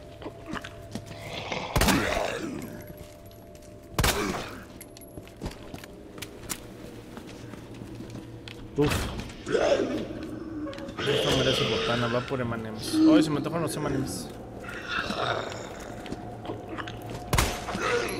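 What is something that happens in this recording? A zombie groans and snarls close by.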